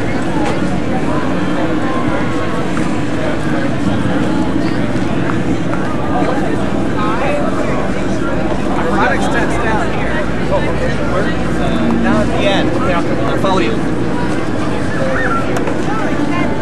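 A crowd murmurs and chatters all around, outdoors.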